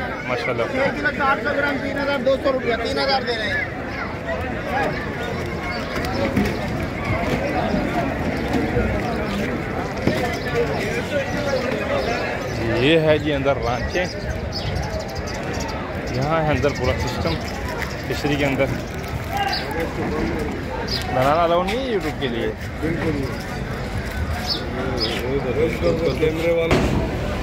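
A crowd of men chatters and talks loudly all around, outdoors.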